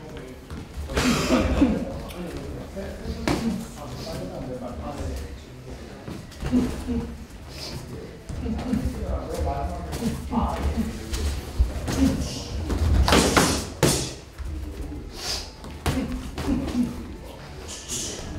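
Shoes squeak and shuffle on the floor.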